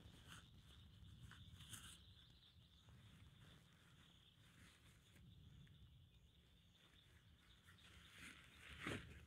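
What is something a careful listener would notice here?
A plastic bag rustles as it is handled.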